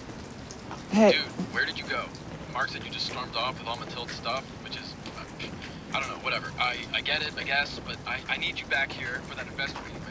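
A woman speaks anxiously into a phone, close by.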